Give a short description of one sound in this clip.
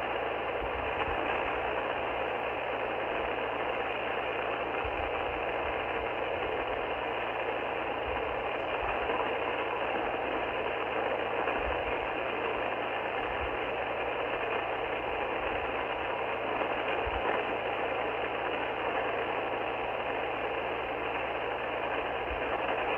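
A radio receiver hisses with steady, crackling static from its loudspeaker.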